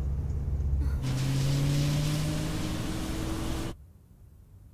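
A car swishes past on a wet road.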